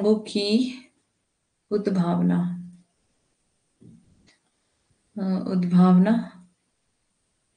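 A young woman speaks calmly into a close microphone, in short phrases with pauses.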